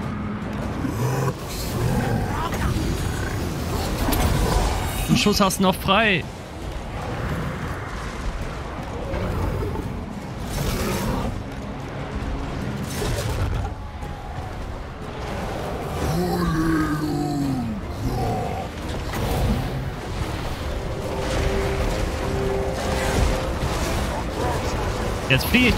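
A large battle rages with clashing weapons.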